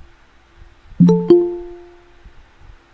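A computer notification chime rings out briefly.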